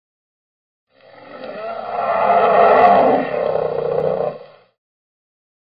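A bear roars loudly.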